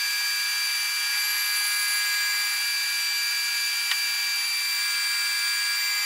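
A milling cutter whines steadily as it cuts metal.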